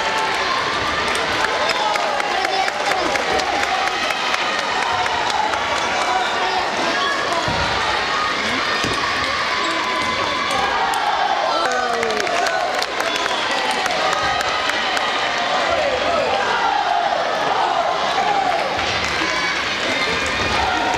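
Table tennis balls click sharply against paddles and tables in quick rallies.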